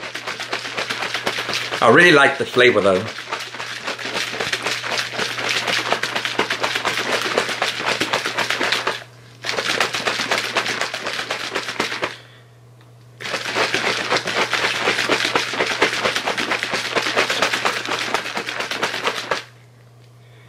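A man shakes a rattling shaker bottle rapidly, close by.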